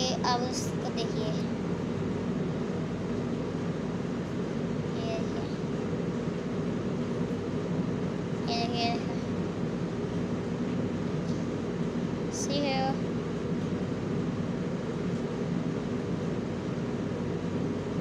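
A boy talks close by, facing the listener.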